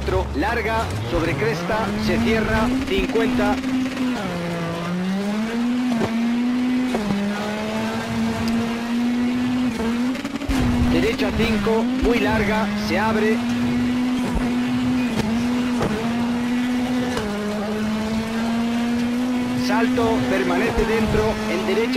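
A rally car engine roars and revs up through the gears.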